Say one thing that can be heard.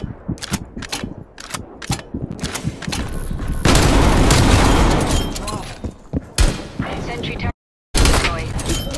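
Gunfire rattles in short bursts with loud bangs.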